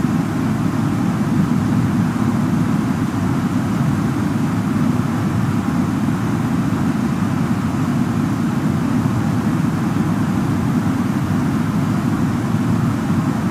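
An aircraft cabin hums with a steady, low engine drone.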